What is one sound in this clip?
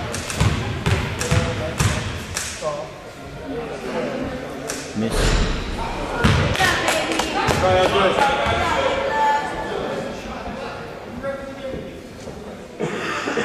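Spectators talk and cheer loudly nearby.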